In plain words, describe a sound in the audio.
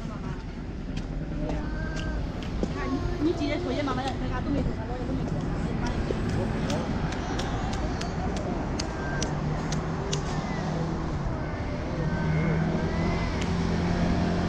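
Footsteps tap on a paved walkway.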